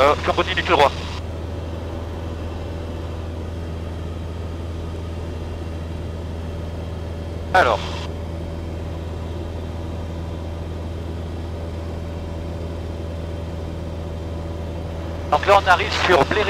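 A small plane's engine drones steadily inside the cabin.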